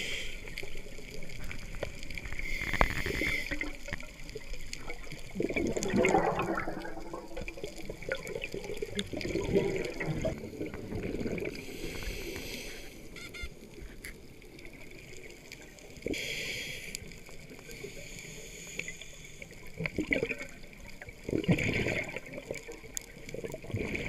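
A scuba regulator hisses as a diver breathes in underwater.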